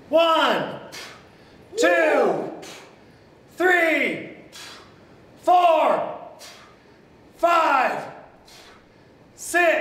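A man calls out a count loudly and rhythmically, close by, in an echoing room.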